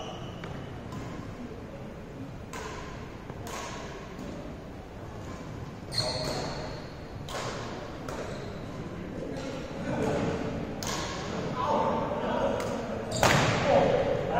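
Badminton rackets strike a shuttlecock with sharp pops.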